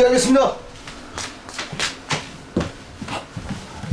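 Footsteps shuffle quickly across a floor.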